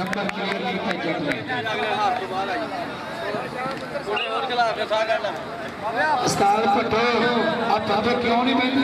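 A man commentates loudly and rhythmically over a loudspeaker, outdoors.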